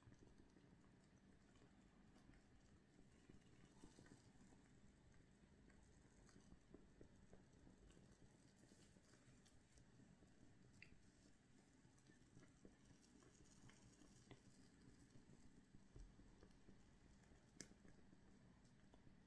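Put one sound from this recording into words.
A small flame flickers and crackles softly.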